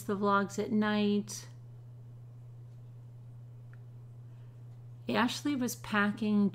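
A woman speaks thoughtfully and close up, as if into a microphone, pausing between phrases.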